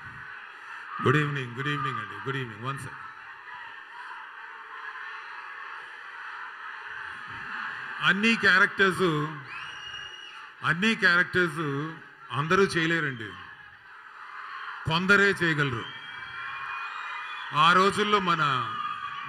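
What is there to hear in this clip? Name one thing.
A middle-aged man sings into a microphone, heard over loudspeakers in a large hall.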